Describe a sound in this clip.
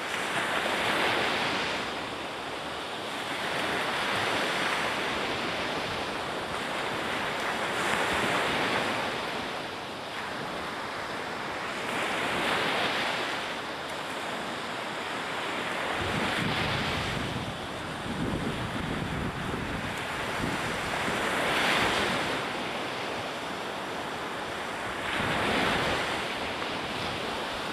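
Waves break and wash onto a sandy shore in steady surges.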